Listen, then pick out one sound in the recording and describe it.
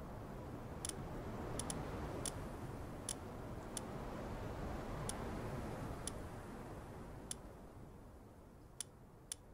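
Short, sharp menu clicks sound every second or so.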